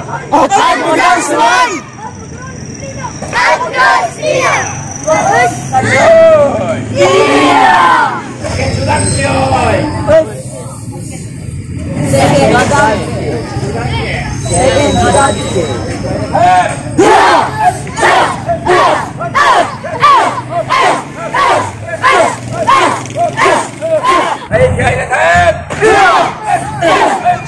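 A group of children and teenagers shout together in short rhythmic bursts.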